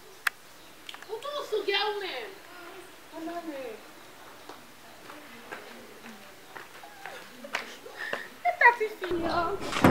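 A young woman talks into a phone.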